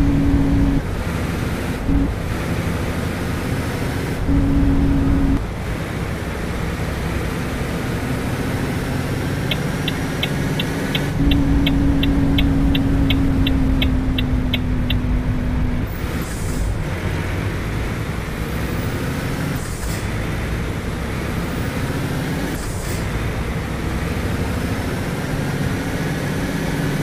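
A truck engine drones steadily as the truck drives along a road.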